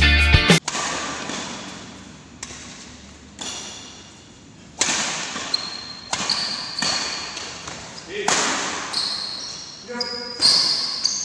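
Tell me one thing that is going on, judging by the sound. Badminton rackets strike a shuttlecock back and forth in a large echoing hall.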